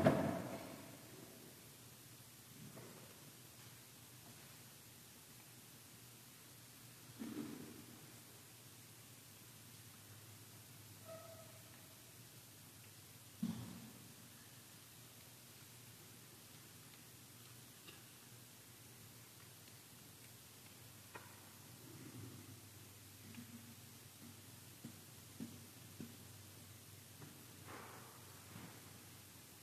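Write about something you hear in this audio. Objects knock softly on a table, echoing in a large hall.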